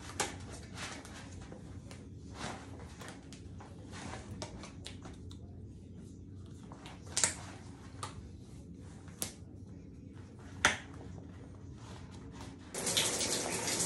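A plastic sleeve crinkles and rustles.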